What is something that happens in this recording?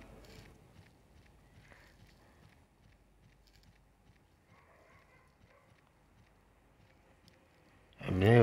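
A creature's feet patter quickly on a dirt path.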